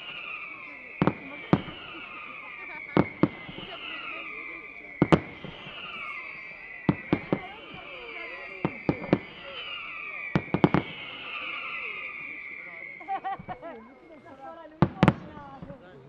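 Fireworks bang sharply, one after another.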